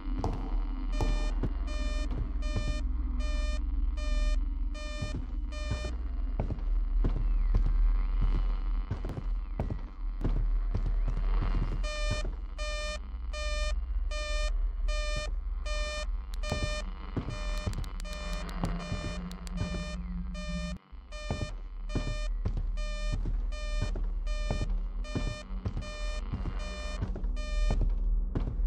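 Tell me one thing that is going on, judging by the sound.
An electronic device beeps in a quick, steady rhythm.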